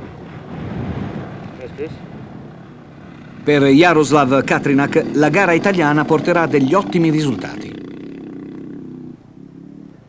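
A motorbike engine revs and roars.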